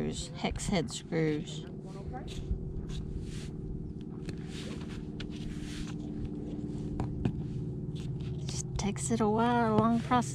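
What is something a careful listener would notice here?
A putty knife scrapes sealant off a hard roof surface.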